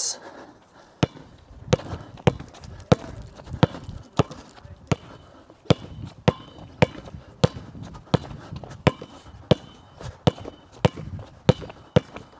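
A basketball bounces rhythmically on a hard court.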